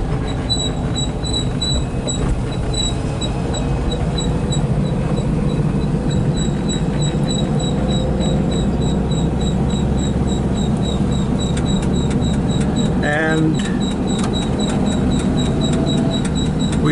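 Tyres roll on a paved road.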